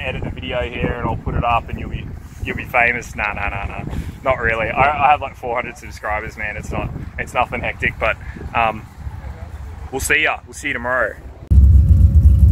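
A man talks animatedly close by.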